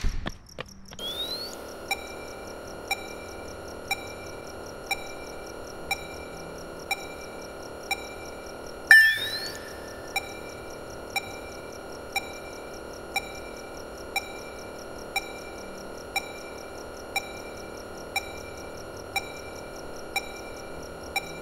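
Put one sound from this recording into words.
A computer hums steadily.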